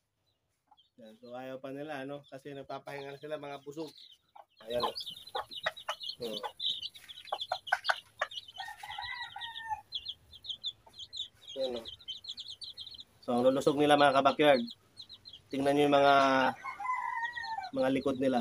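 A hen clucks and calls loudly close by.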